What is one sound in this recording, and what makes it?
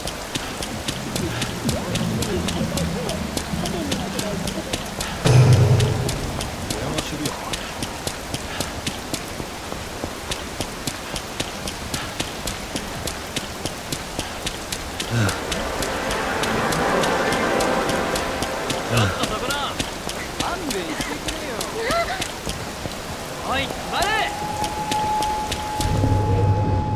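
Footsteps run quickly and splash on wet pavement.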